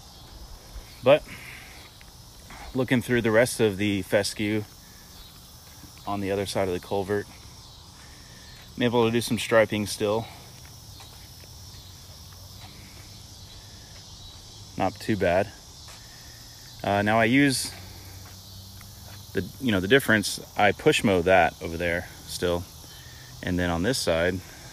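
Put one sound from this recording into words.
A man speaks calmly close to the microphone, in short bursts with pauses.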